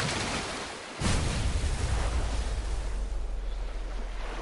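Water splashes and crashes down in a great spray.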